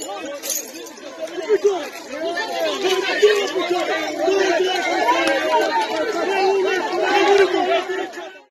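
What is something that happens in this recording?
A crowd of men and women shout and argue outdoors.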